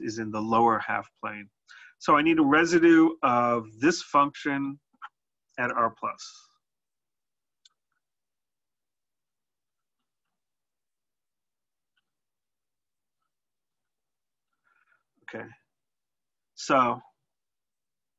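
A man speaks calmly into a close microphone, pausing now and then.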